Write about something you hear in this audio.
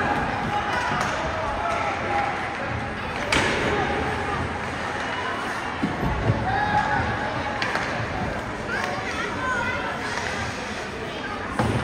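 Spectators chatter and call out around an echoing rink.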